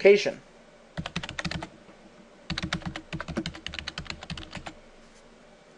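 Keys clatter on a computer keyboard in quick bursts.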